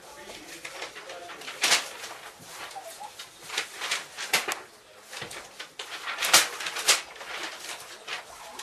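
A young woman reads out aloud, close by.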